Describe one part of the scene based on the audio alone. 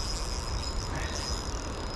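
A fishing reel clicks as its handle is turned.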